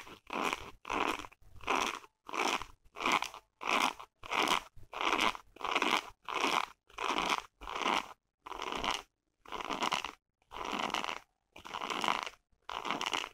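Fingernails scratch and rub on a fabric wallet in short, even bursts, close up.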